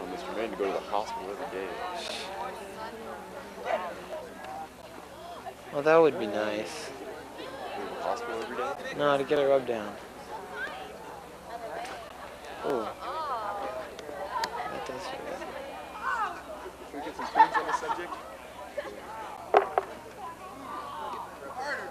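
A crowd of young people chatters and calls out outdoors.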